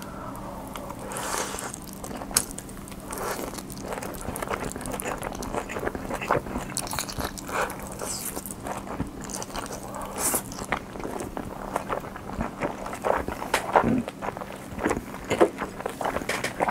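A young man chews food wetly and smacks his lips, close to a microphone.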